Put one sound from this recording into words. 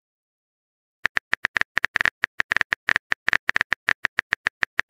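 Rapid keyboard taps click one after another.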